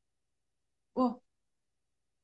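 A woman utters a brief sound close by.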